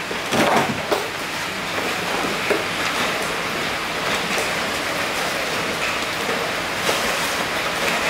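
A plastic motorbike seat knocks and rattles as it is handled.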